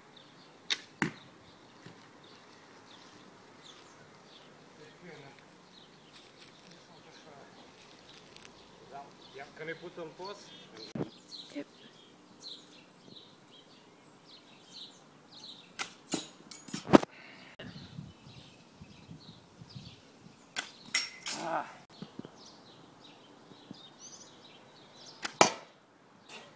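An arrow thuds into a board.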